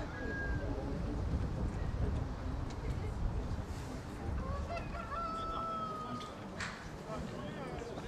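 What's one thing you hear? Wind blows across an open field, rumbling into the microphone.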